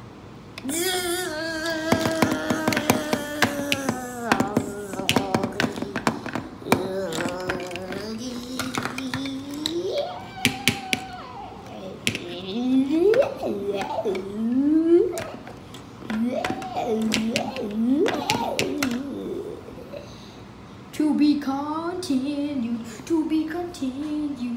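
Plastic toy pieces click and clatter as they are handled.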